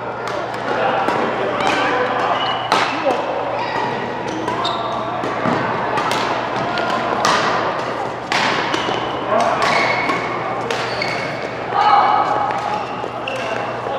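Rackets smack shuttlecocks sharply in a large echoing hall.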